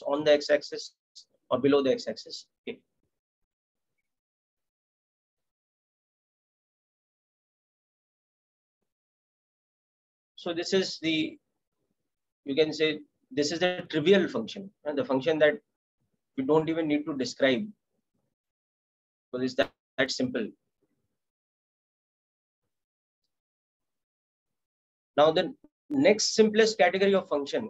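A man speaks calmly through a microphone, explaining, with pauses.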